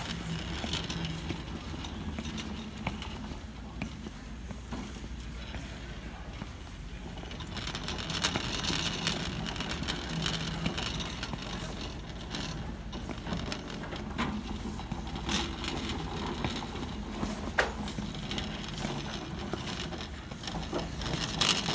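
A wire shopping cart rattles as it rolls.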